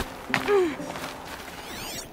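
Footsteps patter quickly on stone paving.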